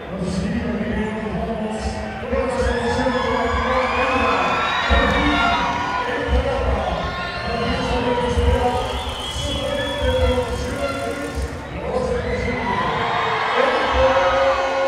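A large crowd cheers and shouts in a big echoing hall.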